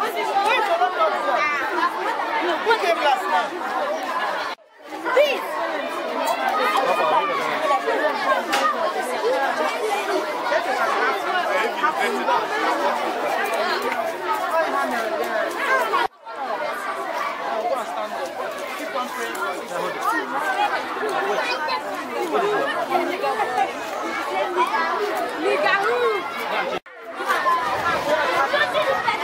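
Many adults and children chatter and call out nearby.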